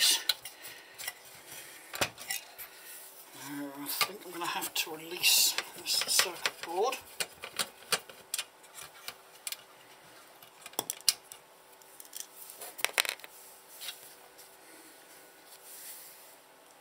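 A screwdriver scrapes and clicks against metal screws.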